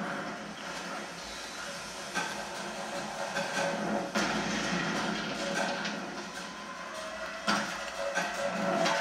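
Video game sounds play from a television speaker.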